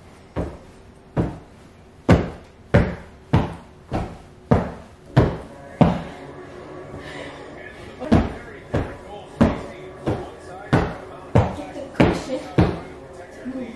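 A woman repeatedly beats a sofa cushion with heavy, dull thumps.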